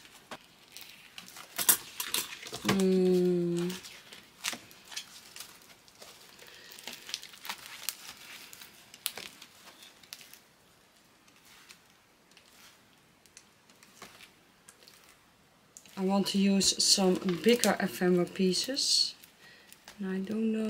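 Plastic album pages rustle and crinkle as they are turned.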